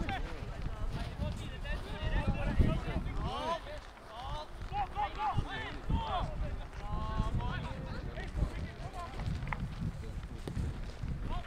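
Men shout and call to each other across an open outdoor field.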